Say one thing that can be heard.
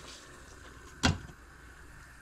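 A metal lid clanks down onto a cooking pot.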